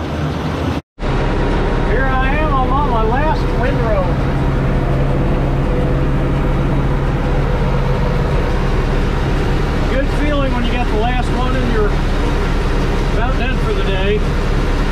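A tractor engine drones steadily while driving.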